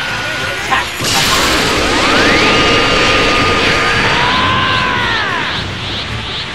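An energy blast bursts out with a loud, rushing roar.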